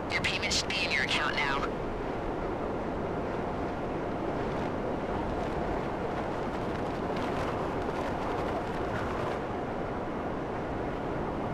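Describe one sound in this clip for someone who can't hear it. A jet engine roars steadily.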